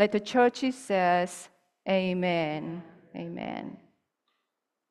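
A woman speaks through a microphone in a large room.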